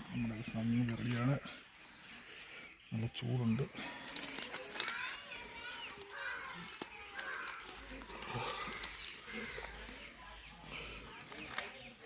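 Dry charred leaves crackle and rustle as hands unwrap them.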